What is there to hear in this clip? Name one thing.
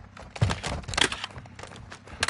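A rifle clicks and clatters as it is reloaded.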